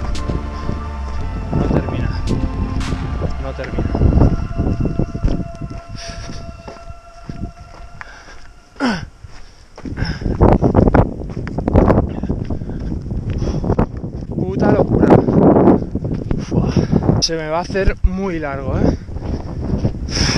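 A man talks close up, slightly out of breath.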